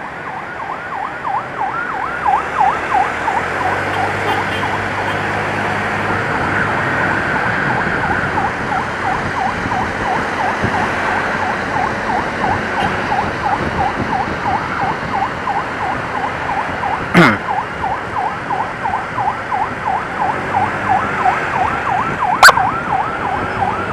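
An ambulance siren wails rapidly up and down close by.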